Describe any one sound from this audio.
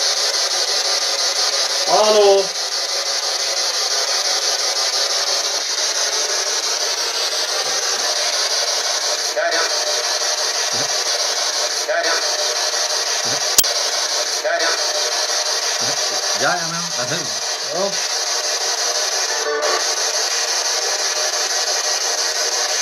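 A handheld device hisses with steady static throughout.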